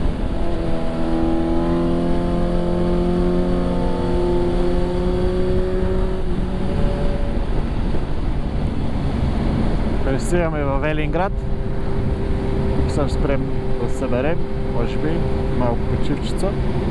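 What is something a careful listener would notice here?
A motorcycle engine hums steadily and shifts pitch as it rides along.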